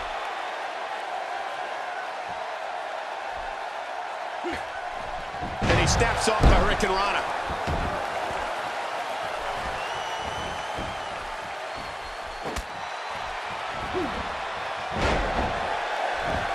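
An arena crowd roars and cheers.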